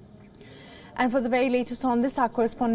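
A woman speaks calmly and clearly, close up.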